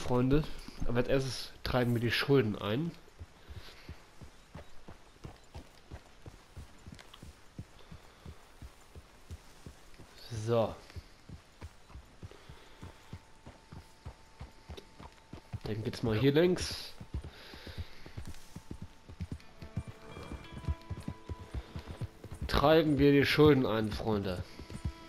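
Horse hooves thud steadily on a dirt trail.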